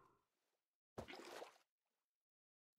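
Water splashes as it is poured out.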